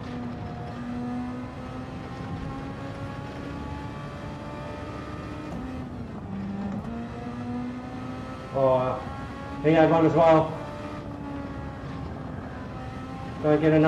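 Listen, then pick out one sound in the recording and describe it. A racing car engine roars and shifts gears at high speed.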